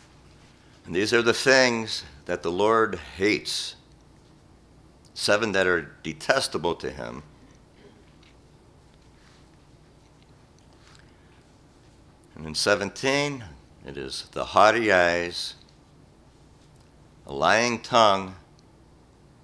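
An elderly man reads aloud slowly through a microphone, with long pauses.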